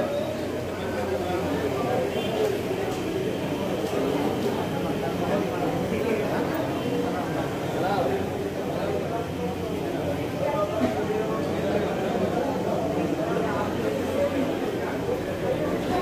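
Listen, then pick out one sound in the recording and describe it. A crowd murmurs and chatters indoors.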